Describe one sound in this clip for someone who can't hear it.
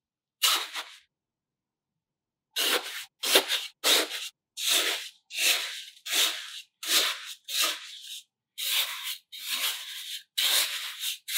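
A small plastic shovel scrapes and digs into damp sand in short repeated strokes.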